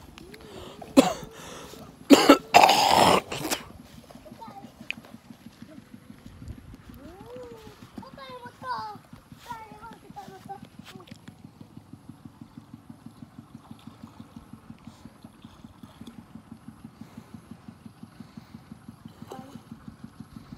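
Children splash loudly in shallow water.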